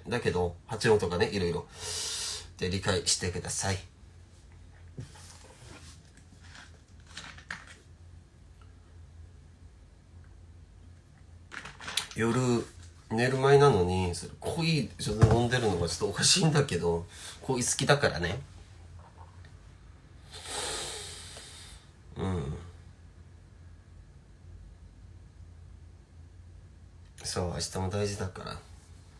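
A young man talks casually and close to a microphone, in bursts with pauses.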